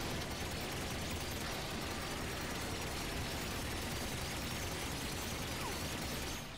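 A turret fires rapidly in a steady stream of blasts.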